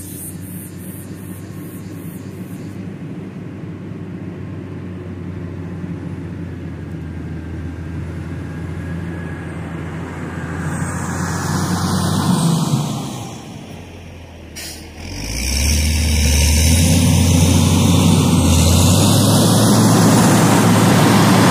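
A heavy diesel engine rumbles nearby as a machine moves off.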